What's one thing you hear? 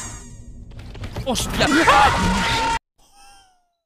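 A loud electronic screech blares suddenly.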